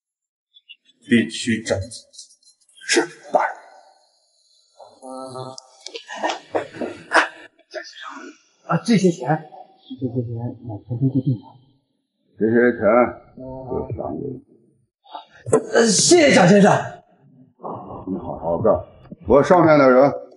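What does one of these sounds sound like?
A middle-aged man speaks with authority.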